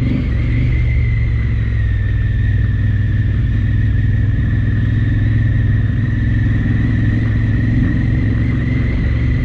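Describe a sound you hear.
Tyres crunch over a rough gravel track.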